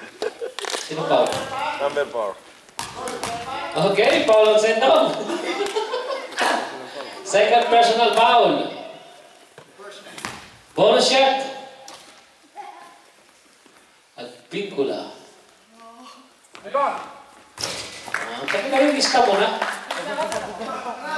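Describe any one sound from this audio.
Men talk and call out nearby in a large echoing hall.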